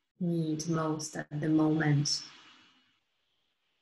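A woman speaks calmly and softly close to a microphone, heard as if through an online call.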